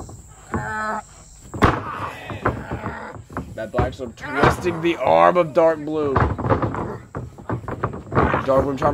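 A young man shouts and groans with strain.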